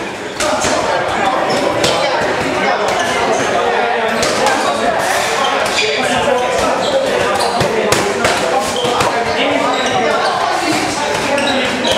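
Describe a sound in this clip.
Boxing gloves thump against padded mitts in quick bursts.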